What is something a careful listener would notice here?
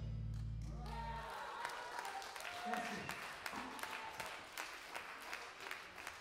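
An electric guitar plays sustained notes.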